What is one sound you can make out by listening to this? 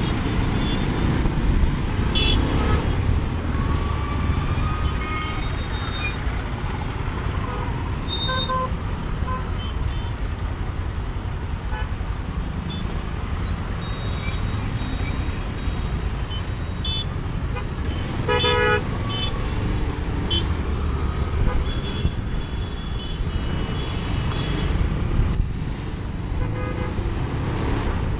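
Wind buffets a microphone on a moving motorcycle.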